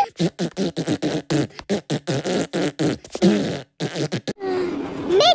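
A woman's cartoon voice babbles playfully.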